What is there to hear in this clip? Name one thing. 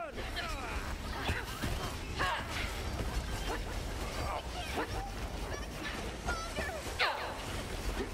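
Explosions thump and boom.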